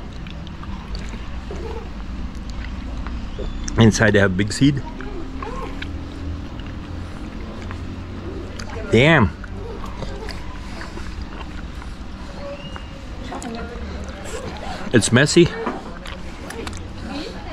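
A man bites and chews juicy fruit noisily.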